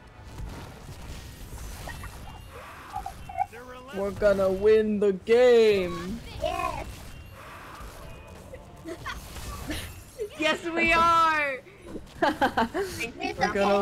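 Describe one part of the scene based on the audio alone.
Sharp magical blasts crash.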